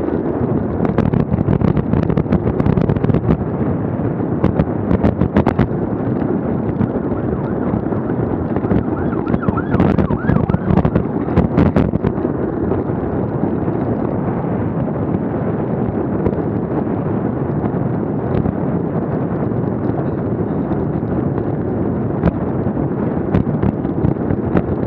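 Wind rumbles loudly against a bicycle-mounted microphone.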